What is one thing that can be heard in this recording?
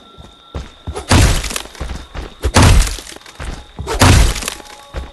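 Heavy blows smash and splinter a wooden door.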